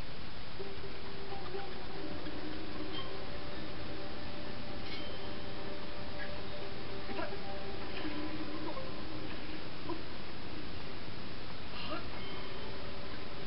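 Game music with a soft, tinkling melody plays through a television speaker.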